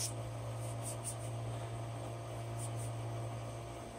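Paper rustles softly under a hand.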